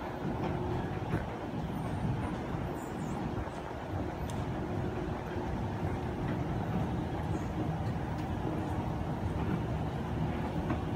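An escalator hums and rumbles steadily nearby.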